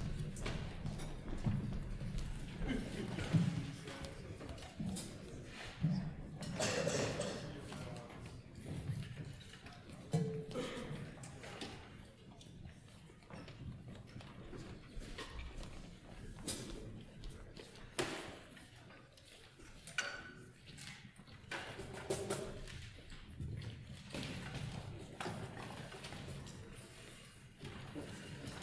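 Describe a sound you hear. Many young people chat and murmur at a distance in a large echoing hall.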